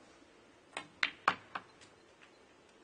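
Snooker balls clack sharply together.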